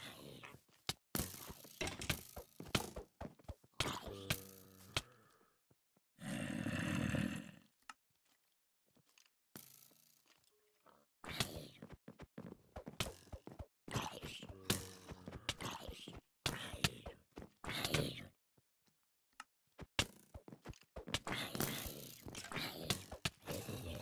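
Zombies groan.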